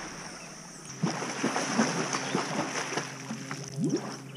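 Water splashes as a girl swims.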